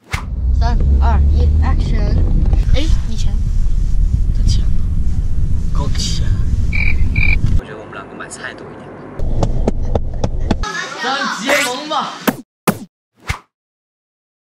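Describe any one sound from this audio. Young boys talk with animation, close by.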